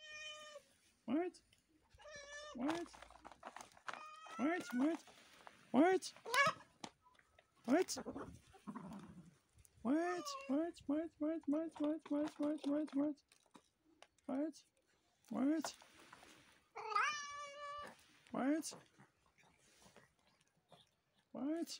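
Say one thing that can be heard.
Several cats meow loudly and repeatedly close by.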